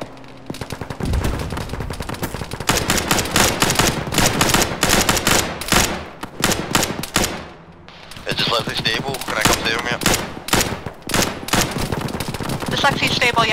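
Rifle shots fire in rapid bursts.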